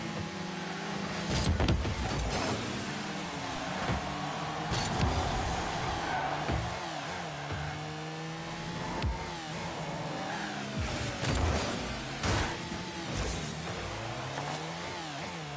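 Game car engines hum and whine, rising and falling in pitch.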